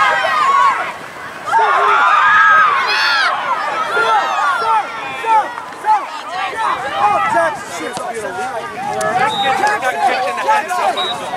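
Several young voices shout and call out across an open outdoor field.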